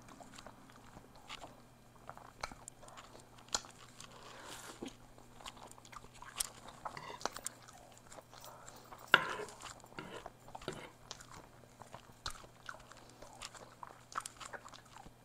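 A fork scrapes and clinks against a plate of noodles.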